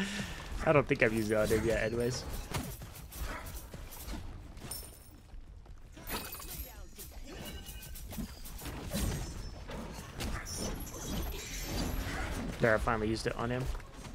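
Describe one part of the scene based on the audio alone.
Game spells whoosh and burst during a fight.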